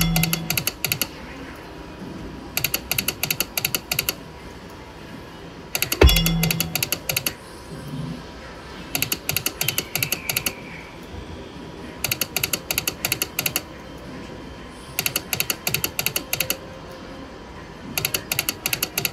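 Slot machine reels spin with rapid clicking ticks.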